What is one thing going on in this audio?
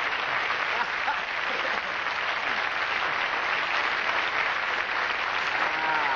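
An elderly man laughs heartily.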